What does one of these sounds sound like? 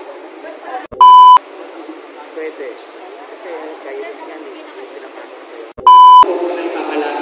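A loud, steady test beep sounds briefly.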